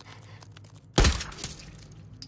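A single loud gunshot rings out.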